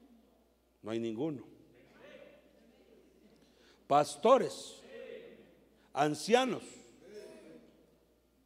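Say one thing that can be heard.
A man preaches with animation through a microphone in a large echoing hall.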